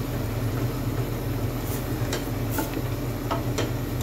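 A spoon knocks and scrapes against a metal pot while stirring.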